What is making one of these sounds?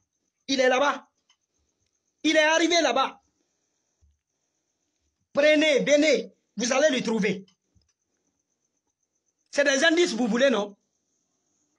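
A young man speaks emotionally in short bursts, close by.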